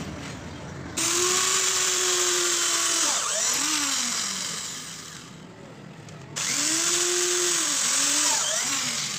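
A power drill whirs as it bores into wood, slowing and speeding up.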